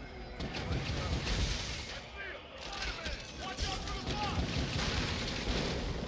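Webs shoot out with quick zipping swishes.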